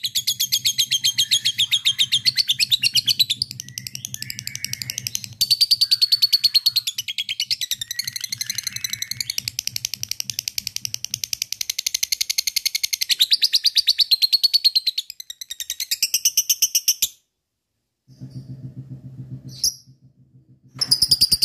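A small parrot chatters in a fast, shrill stream of chirps, close by.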